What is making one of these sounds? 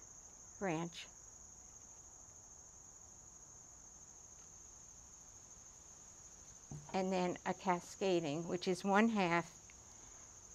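An elderly woman speaks calmly and close by.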